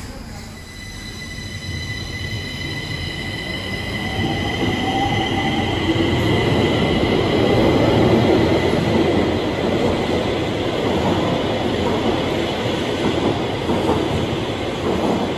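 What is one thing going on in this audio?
A subway train whines and rumbles as it pulls away, growing louder.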